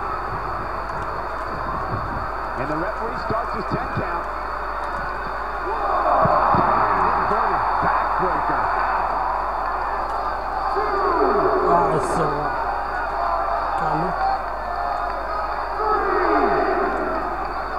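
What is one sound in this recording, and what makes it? A large crowd cheers and roars in a big arena, swelling at times.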